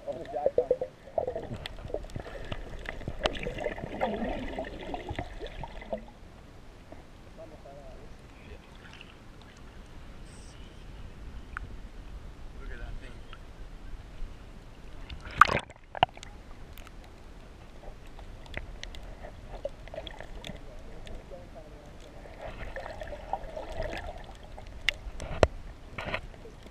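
Water gurgles and rumbles, muffled as if heard underwater.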